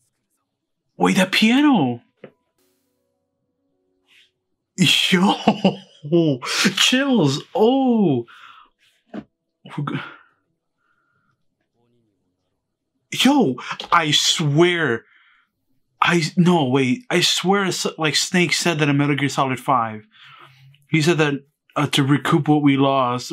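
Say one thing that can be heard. A man talks with animation close to a microphone, with exclamations and pauses.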